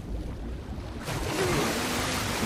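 A man gasps and shouts in water.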